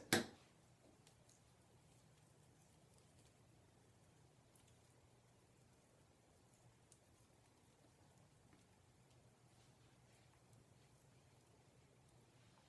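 Fingers rub and twist strands of hair softly, close by.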